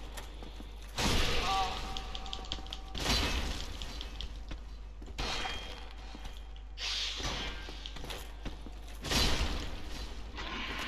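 Swords clash and metal armour clangs in a fight.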